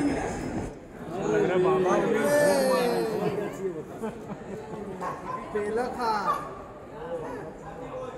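A crowd of men and women chatter and call out nearby.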